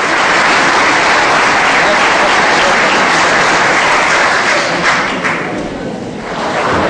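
A crowd applauds in a room.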